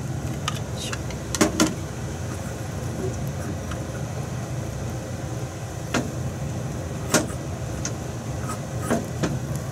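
A gas burner hisses and roars steadily.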